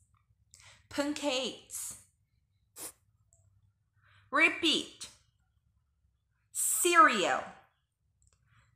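A young woman speaks clearly and slowly, close to a microphone, in short separate phrases.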